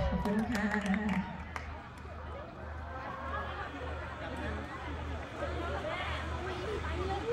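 Young women talk and call out nearby.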